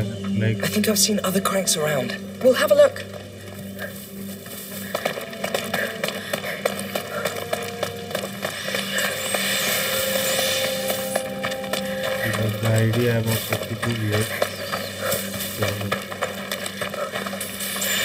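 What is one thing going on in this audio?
Footsteps crunch quickly over gravel and dirt.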